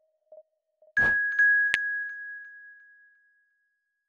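A bright electronic chime rings out and slowly fades.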